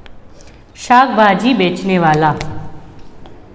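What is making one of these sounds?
A young woman speaks clearly.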